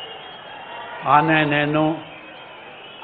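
An elderly man reads out slowly through a loudspeaker.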